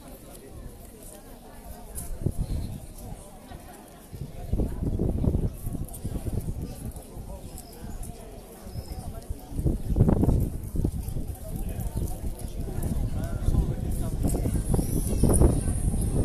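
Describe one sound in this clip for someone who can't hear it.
A crowd murmurs quietly outdoors.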